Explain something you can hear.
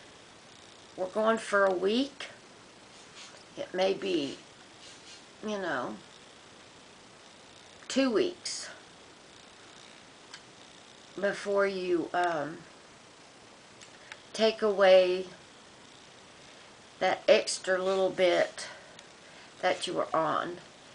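A middle-aged woman speaks calmly in short phrases close to the microphone, with pauses between them.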